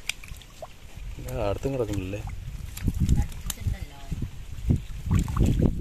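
Water splashes as hands move in a shallow stream.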